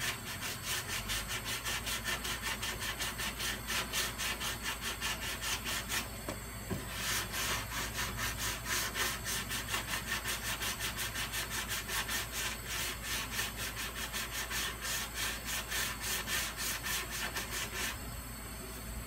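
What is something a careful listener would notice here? A sanding block scrapes rapidly back and forth over metal.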